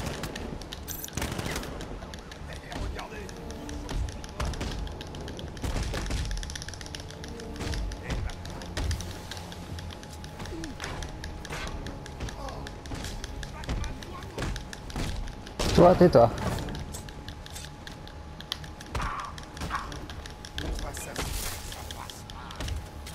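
Punches and kicks thud repeatedly in a fast brawl.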